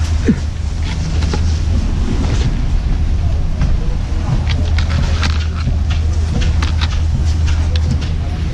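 Ski boots crunch and shuffle on packed snow.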